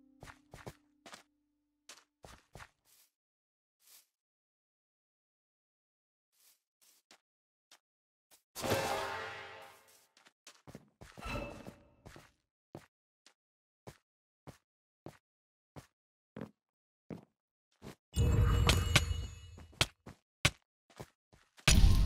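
Footsteps tap steadily on ground and stone.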